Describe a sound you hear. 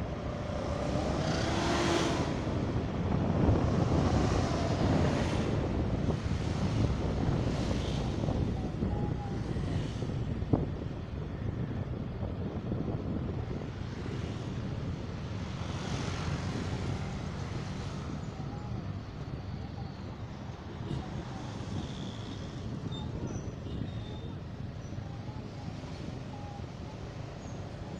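A motorcycle engine hums while riding along.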